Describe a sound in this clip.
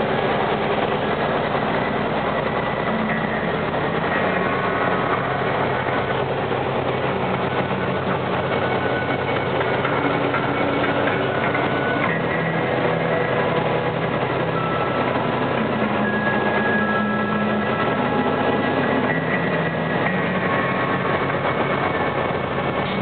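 A car drives steadily along a road, its engine and tyres humming.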